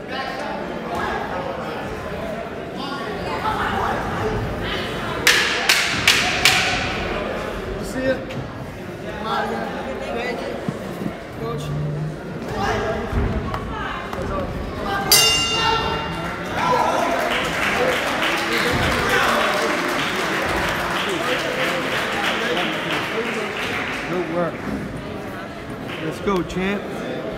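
A crowd talks and shouts in a large echoing hall.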